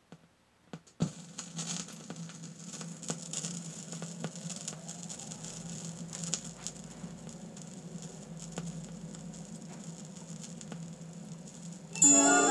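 A vinyl record crackles and hisses as it spins.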